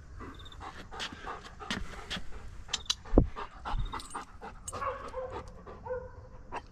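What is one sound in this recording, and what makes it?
A dog pants quickly and heavily close by.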